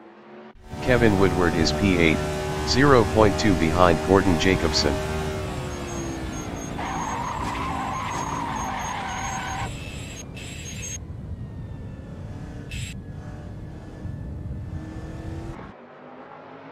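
A race car engine roars and revs steadily.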